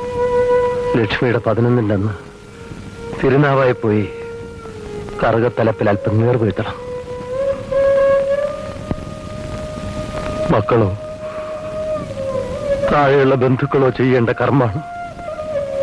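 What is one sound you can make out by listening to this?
An elderly man speaks in short, emotional bursts.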